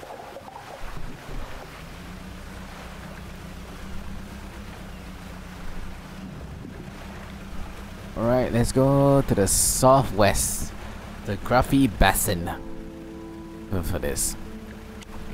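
A boat engine hums steadily over water.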